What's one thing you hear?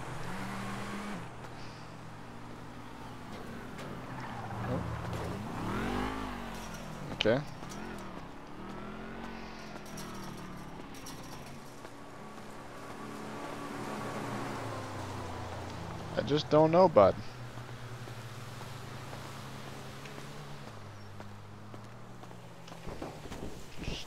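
Footsteps tread on pavement at a steady walking pace.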